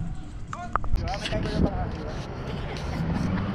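A rake scratches across grass.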